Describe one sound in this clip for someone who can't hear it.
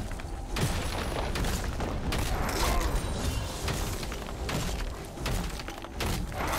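Game combat effects crackle and burst in quick succession.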